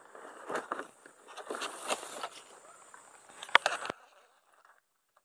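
A nylon bag rustles and crackles in a hand.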